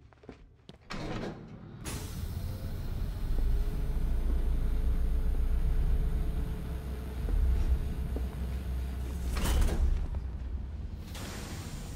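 A heavy metal vault door grinds and rumbles as a wheel is turned.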